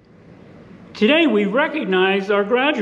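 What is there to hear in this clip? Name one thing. An elderly man speaks clearly and steadily, close to a microphone.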